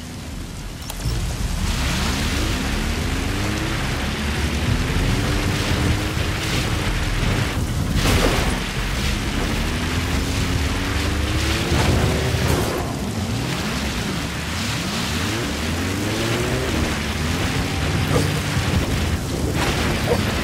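An off-road car engine rumbles and revs as the car drives over rough ground.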